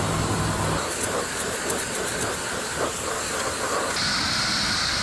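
A skid steer loader's engine rumbles nearby outdoors.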